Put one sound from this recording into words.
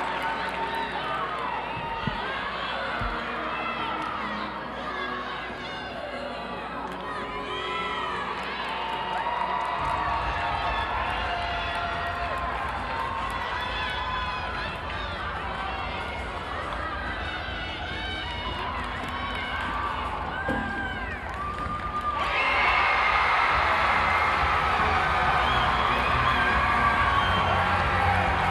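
A large crowd cheers and chatters in a big echoing arena.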